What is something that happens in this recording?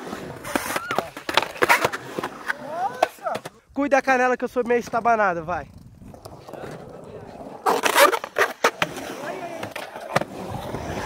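Skateboard decks clack sharply against concrete.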